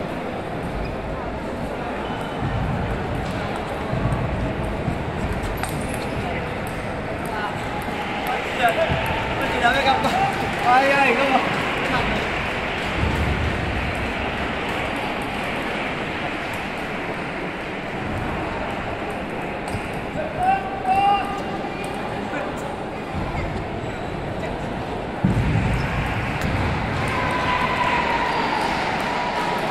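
Ping pong balls click on tables and paddles.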